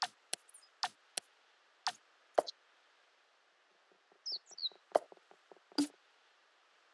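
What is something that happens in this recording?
Short game interface clicks and chimes sound as menus open and close.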